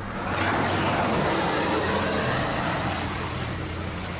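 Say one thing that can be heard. A truck passes by on a wet road.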